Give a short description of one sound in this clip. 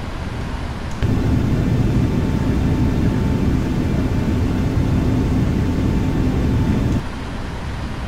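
Jet engines roar louder and closer, then drop back.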